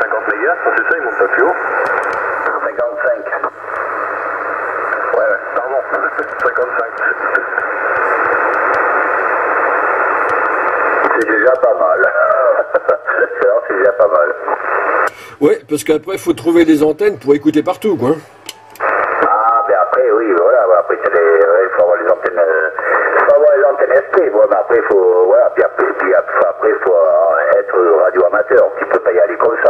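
Voices come through a radio loudspeaker, thin and crackling with static.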